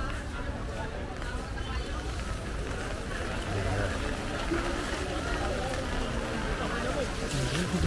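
Footsteps splash on a wet street.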